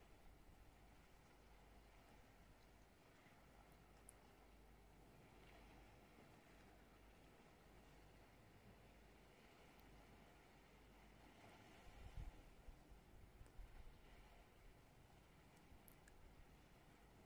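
Waves wash softly against the shore far below.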